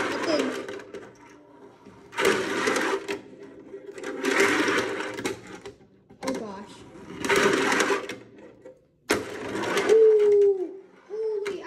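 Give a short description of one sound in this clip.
A fingerboard's wheels roll back and forth on a wooden half-pipe ramp.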